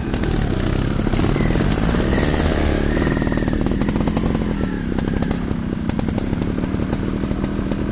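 A dirt bike engine revs loudly nearby and fades as it rides away through the woods.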